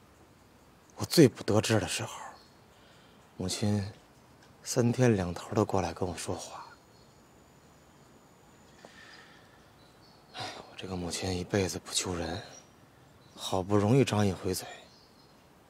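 A young man speaks calmly and close by, in short phrases with pauses.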